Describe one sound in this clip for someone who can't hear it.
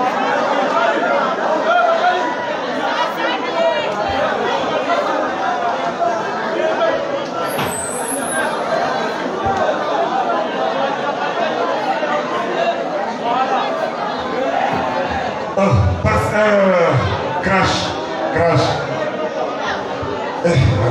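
A crowd of young people chatters and shouts loudly nearby.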